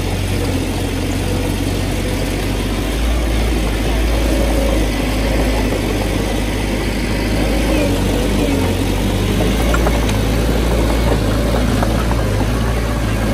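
Bulldozer tracks clank and squeak as the machine moves.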